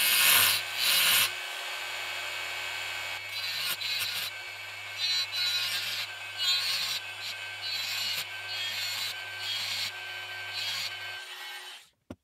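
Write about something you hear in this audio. A small rotary grinder whines as it grinds metal.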